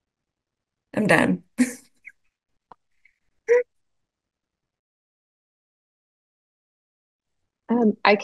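A young woman laughs softly through an online call.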